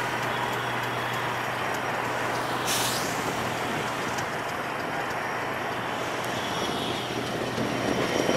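A diesel locomotive rumbles steadily as a passenger train approaches.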